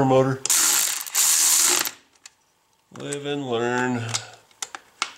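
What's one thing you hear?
An air ratchet whirs and hisses in short bursts.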